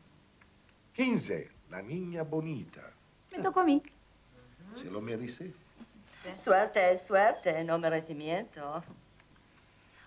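A woman talks clearly nearby.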